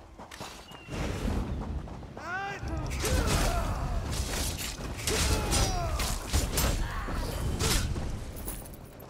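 Magic blasts and impacts crash and whoosh in quick bursts.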